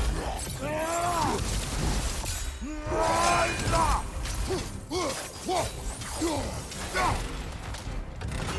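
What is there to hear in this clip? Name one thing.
Chained blades whoosh and slash through the air.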